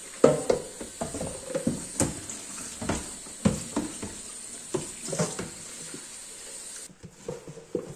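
Water runs from a tap and splashes into a plastic container.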